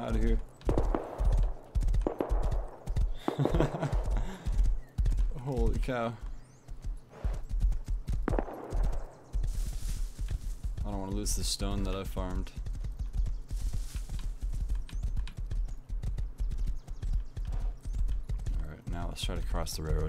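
A horse's hooves thud steadily on grass.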